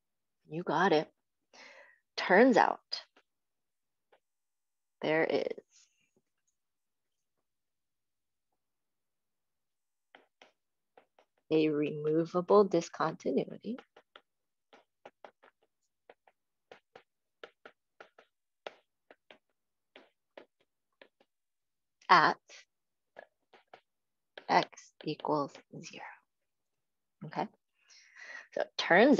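A young woman speaks calmly, heard through an online call.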